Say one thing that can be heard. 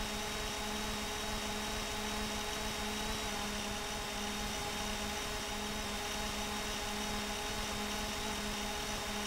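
A scooter engine hums steadily as it drives along.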